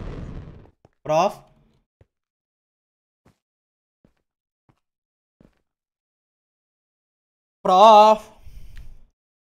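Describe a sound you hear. A young man speaks briefly and close into a microphone.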